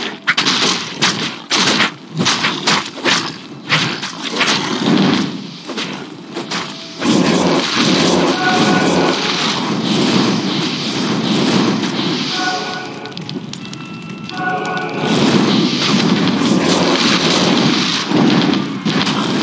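Game combat sounds clash and thud as skeletons fight monsters.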